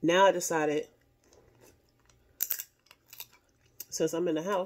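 Food crunches as a woman chews.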